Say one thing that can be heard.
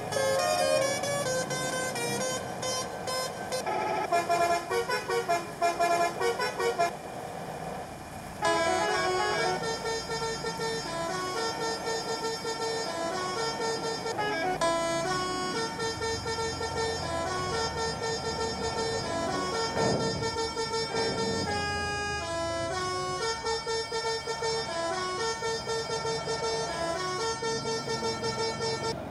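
Music with a steady beat plays throughout.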